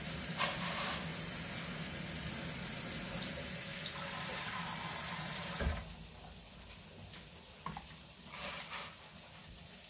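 A metal ladle scoops and pours water in a pot.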